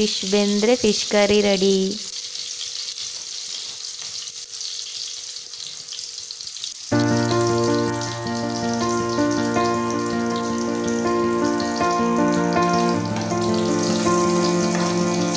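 Oil sizzles faintly in a frying pan.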